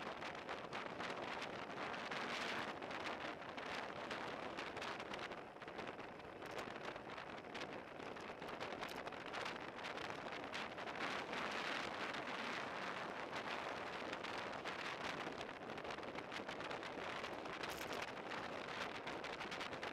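Wind roars loudly against a moving bicycle.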